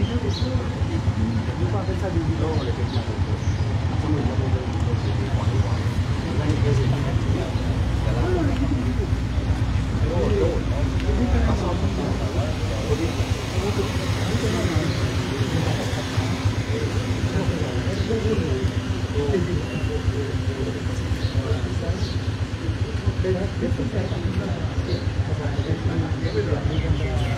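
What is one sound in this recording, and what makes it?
A middle-aged man speaks with animation outdoors at close range.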